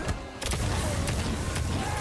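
Fire bursts with a roaring whoosh.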